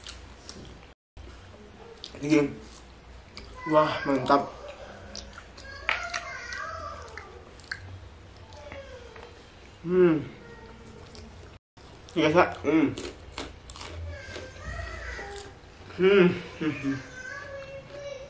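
A man chews food loudly with his mouth close to a microphone.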